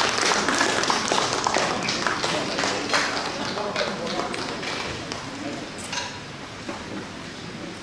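An audience claps and applauds, the clapping slowly fading.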